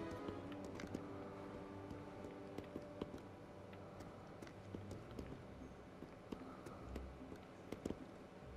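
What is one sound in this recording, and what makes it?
Footsteps tap steadily on a stone floor in a large echoing hall.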